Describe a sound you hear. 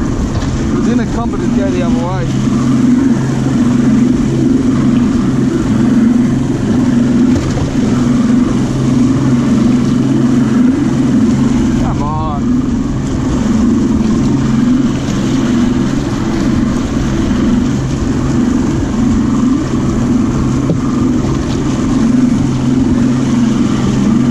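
An outboard motor drones loudly and steadily.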